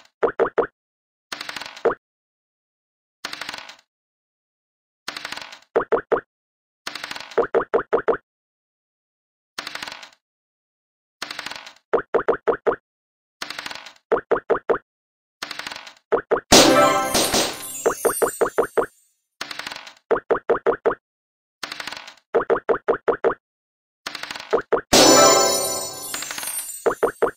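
Game pieces hop across squares with quick plinking blips.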